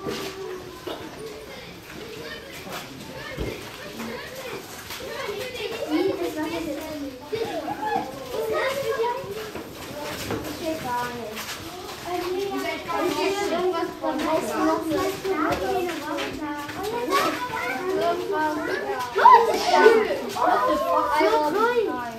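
Water laps and sloshes close by.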